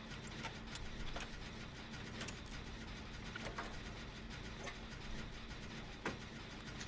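An engine being repaired clanks and clicks.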